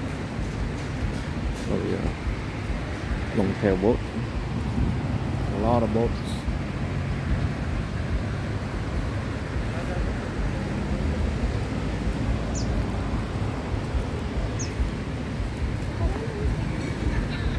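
Small waves wash gently onto a sandy shore.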